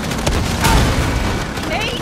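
A cannon blast roars nearby.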